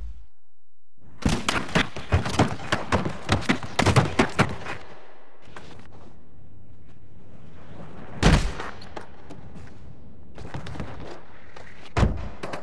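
A skateboard's wheels roll and clatter over hard ramps.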